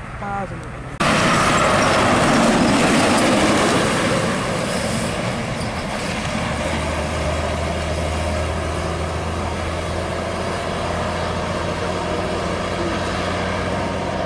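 A bus engine roars as the bus pulls away.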